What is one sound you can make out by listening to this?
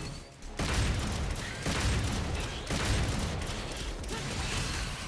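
Explosions boom and crackle in quick bursts.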